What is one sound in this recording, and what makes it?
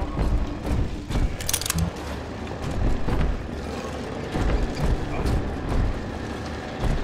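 Footsteps thud on wooden boards at a steady walking pace.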